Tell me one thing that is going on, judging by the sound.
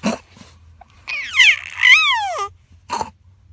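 A baby giggles and squeals with delight.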